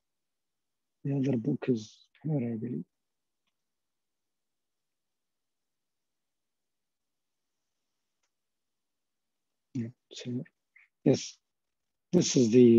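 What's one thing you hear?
A man speaks calmly in short bursts over an online call.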